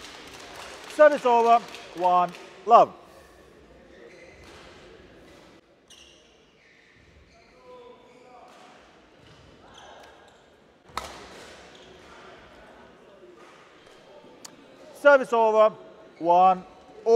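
A young man shouts loudly after a rally, echoing in a large hall.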